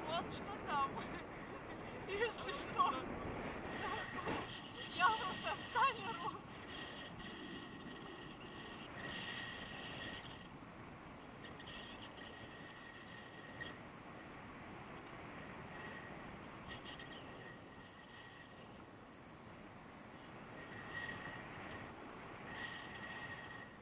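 Wind rushes steadily past a microphone outdoors.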